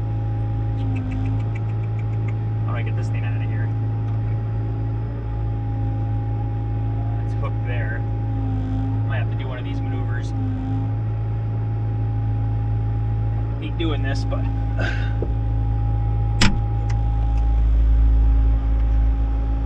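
A heavy diesel engine drones steadily up close, heard from inside a cab.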